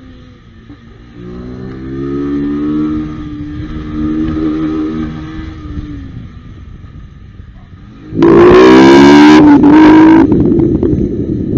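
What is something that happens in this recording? A motorcycle engine revs and roars as the bike rides along, growing loud near the end.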